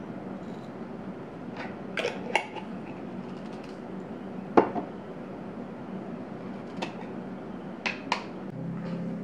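A glass jar lid clinks and knocks as it is handled.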